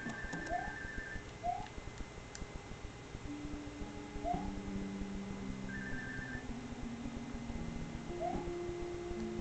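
A video game character's jumps make short rising chirps.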